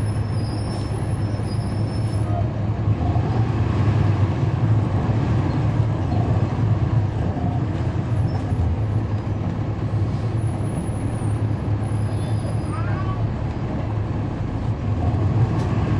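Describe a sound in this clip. A bus engine idles with a steady low rumble close by.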